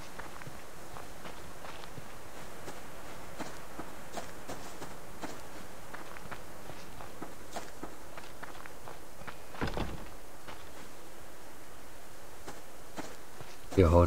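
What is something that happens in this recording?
Footsteps rustle through grass at a steady walking pace.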